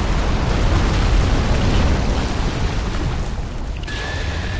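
A huge creature crashes to the ground with a deep, heavy rumble.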